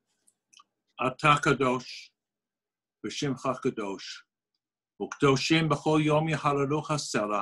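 An older man speaks calmly and firmly over an online call.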